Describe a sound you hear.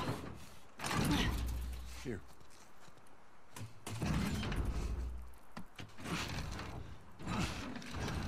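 A heavy metal door rattles and thuds as it is pushed.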